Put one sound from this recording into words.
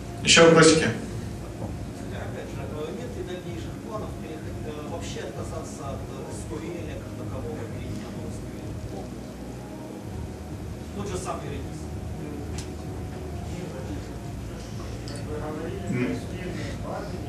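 A young man speaks calmly through a microphone in an echoing hall.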